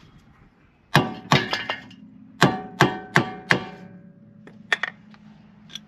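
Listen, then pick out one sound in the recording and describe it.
A hammer strikes metal with ringing knocks.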